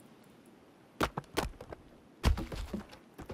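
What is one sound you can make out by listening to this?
An axe strikes wood with sharp knocks.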